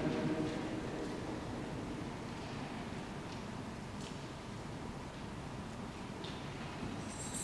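A metal censer clinks softly on its chains.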